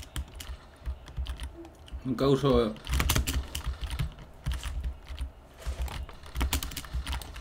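Quick game footsteps patter steadily.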